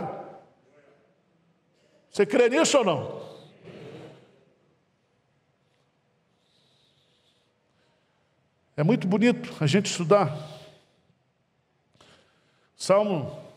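A middle-aged man speaks with animation into a microphone, in bursts with long pauses.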